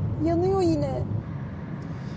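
A young woman speaks in a distressed voice nearby.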